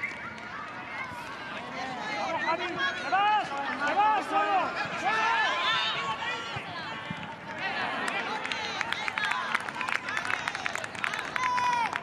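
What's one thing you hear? Children shout and cheer excitedly outdoors.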